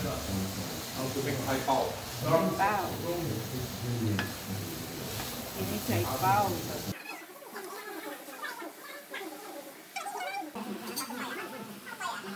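A spatula scrapes and tosses shredded vegetables in a pan.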